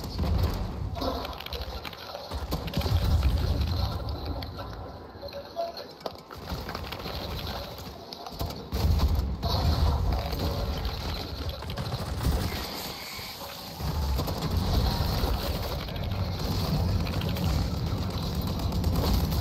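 Guns fire in rapid bursts, loud and close.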